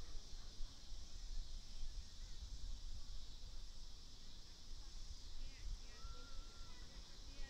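Wind rumbles against the microphone outdoors.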